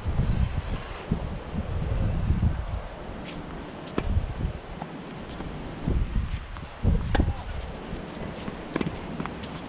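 A tennis ball is struck with a racket and pops sharply.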